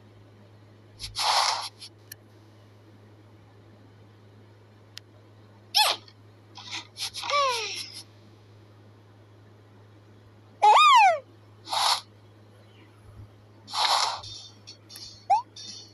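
Playful cartoon sound effects chirp and squeak now and then.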